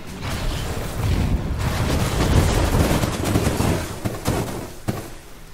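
Magic spells whoosh and crackle in a fight.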